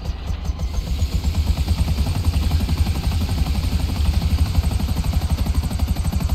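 Helicopter rotor blades thump loudly.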